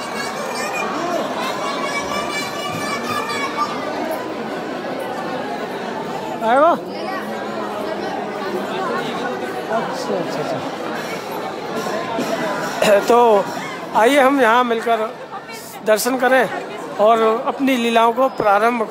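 A crowd of men and women chatter loudly in a large echoing hall.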